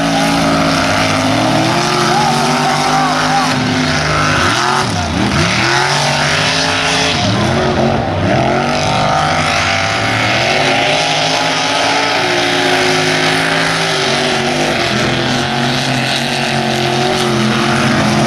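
Modified race truck engines roar at full throttle on a muddy dirt track.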